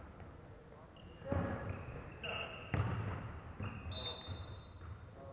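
Basketball shoes squeak sharply on a hardwood court in a large echoing hall.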